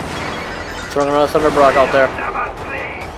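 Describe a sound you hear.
Explosions boom in quick succession.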